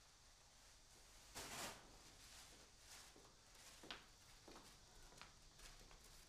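Footsteps tap slowly on a hard floor, coming closer.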